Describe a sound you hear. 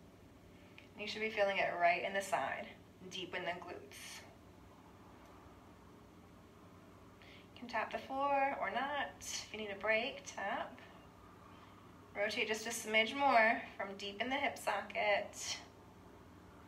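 A woman speaks calmly and clearly into a nearby microphone, in short bursts.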